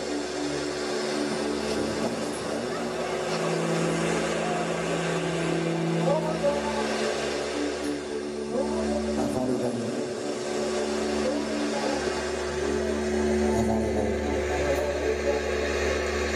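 A saxophone plays.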